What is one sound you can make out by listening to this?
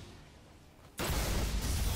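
Gunfire bursts out loudly.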